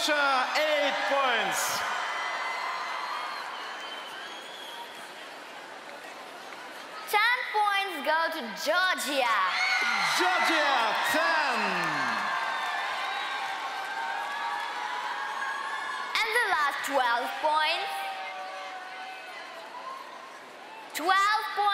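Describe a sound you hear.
A young girl speaks into a microphone with animation, heard through a loudspeaker in a large echoing hall.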